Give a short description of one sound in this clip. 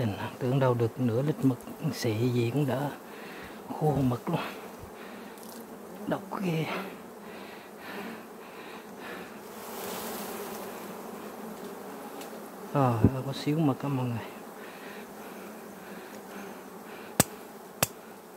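Bees buzz softly close by.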